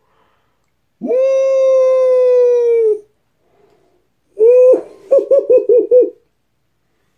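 A man makes long, exaggerated sung sounds close to a microphone.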